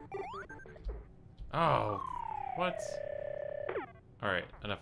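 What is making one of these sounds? Electronic arcade game bleeps and a falling tone play.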